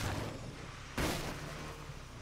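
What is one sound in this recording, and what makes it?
A truck crashes through a wooden fence with a loud crack.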